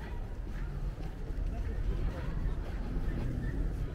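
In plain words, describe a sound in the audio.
Footsteps of passers-by tap on paving stones nearby.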